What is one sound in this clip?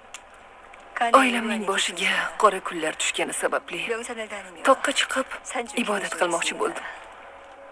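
A young woman speaks softly and closely.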